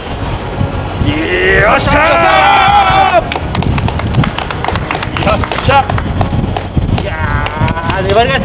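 Several men shout and cheer excitedly close to a microphone outdoors.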